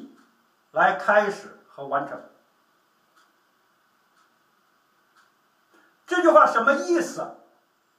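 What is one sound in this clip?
A middle-aged man speaks with animation close by, in short bursts with pauses.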